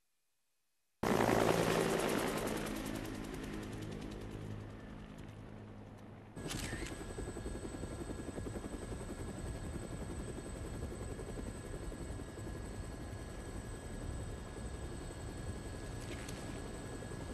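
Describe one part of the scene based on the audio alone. A helicopter's rotor thumps and drones overhead.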